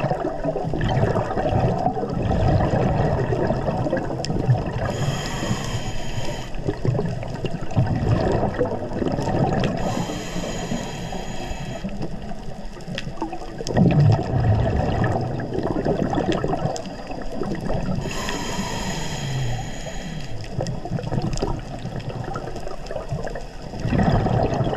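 Bubbles rumble and gurgle underwater.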